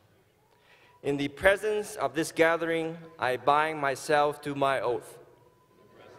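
A young man speaks calmly through a microphone in a large echoing hall.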